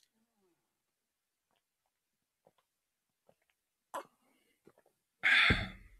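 A man sips a drink and swallows.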